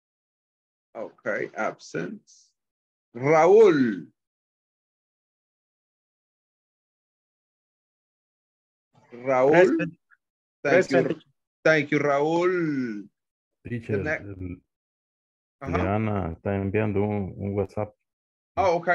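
A man speaks over an online call in short bursts with pauses.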